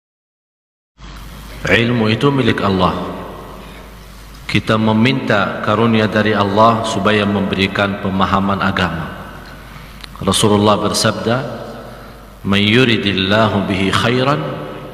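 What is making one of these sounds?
A man speaks with feeling into a microphone, his voice slightly echoing.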